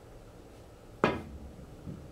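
A pool cue strikes a cue ball.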